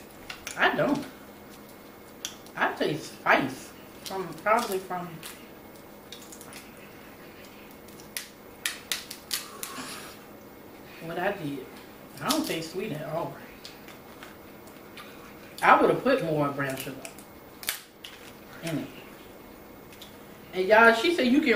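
Crab shells crack and snap in hands.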